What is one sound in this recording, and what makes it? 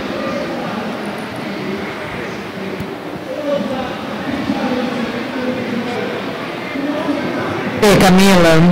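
A woman speaks calmly through a microphone in a large echoing hall.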